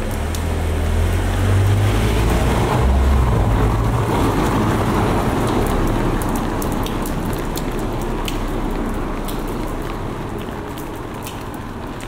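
A car drives slowly along a narrow street and passes close by.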